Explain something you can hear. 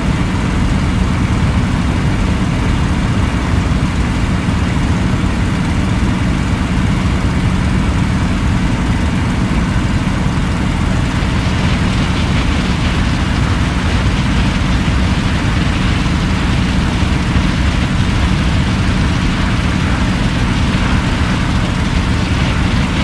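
Wind rushes past the cockpit, growing louder partway through.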